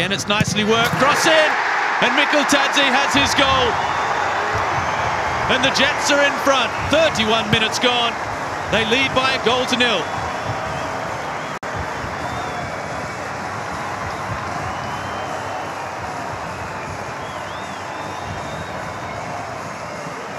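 A large crowd roars and cheers loudly in a stadium.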